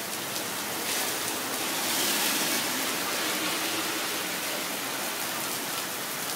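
A car swishes past on a wet road.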